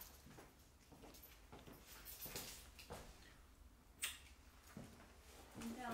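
Footsteps approach across a wooden floor.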